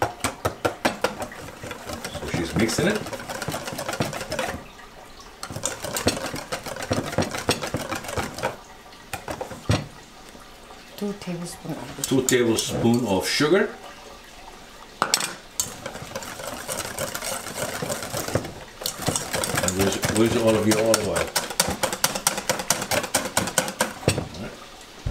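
A whisk clatters rapidly against a metal bowl.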